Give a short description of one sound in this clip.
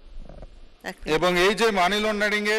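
A man reads out through a microphone.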